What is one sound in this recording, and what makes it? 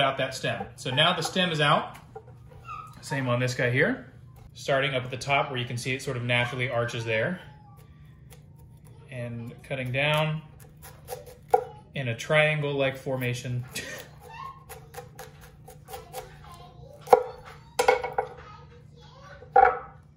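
A knife taps on a wooden board.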